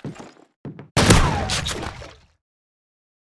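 A pump-action shotgun fires a blast that echoes in a stone hall.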